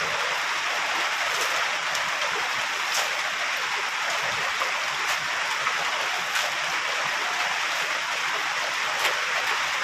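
A shovel drops clumps of wet mud onto a pile.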